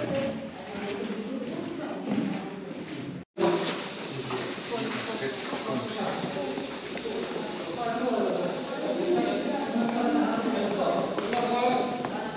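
Footsteps scuff on a stone path.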